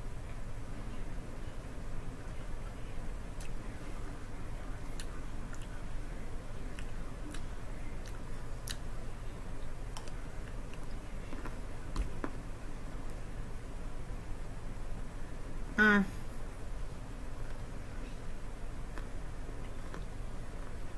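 A woman chews raw broccoli with a crunch.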